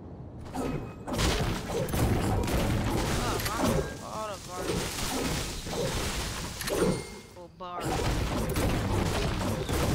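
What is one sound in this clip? A pickaxe strikes a tree with hard, repeated thuds.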